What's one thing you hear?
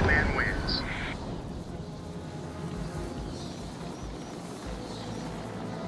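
A helicopter hovers overhead with a low, steady drone.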